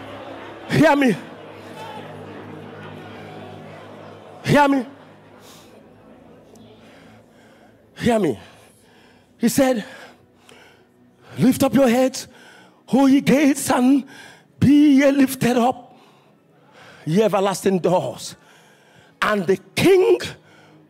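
A man preaches loudly and with passion through a microphone in a large echoing hall, in short shouted bursts.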